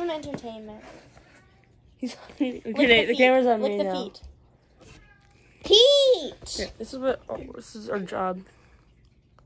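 A boy talks with animation close by.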